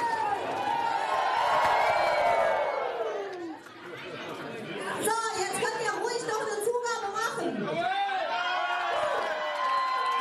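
A man sings through a loudspeaker in a hall.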